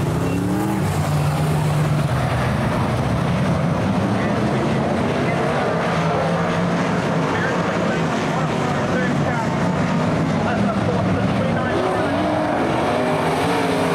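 Race car engines roar loudly as they speed past.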